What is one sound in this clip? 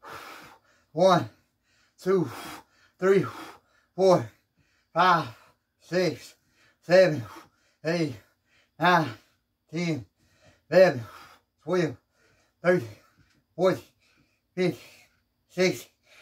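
A man counts out loud in short strained bursts, close by.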